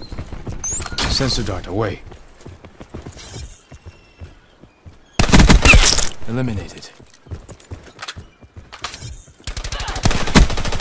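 Rapid bursts of automatic gunfire ring out.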